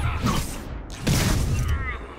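A sharp crashing impact bursts out.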